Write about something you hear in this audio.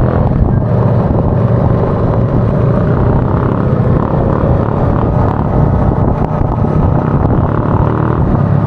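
An engine roars close by as a motorbike rides along.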